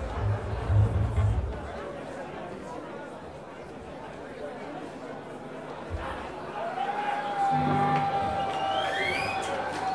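A large crowd cheers and shouts in a hall.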